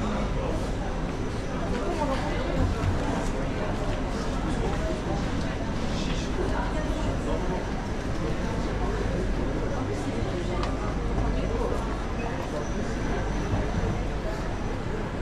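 A crowd murmurs in an echoing underground hall.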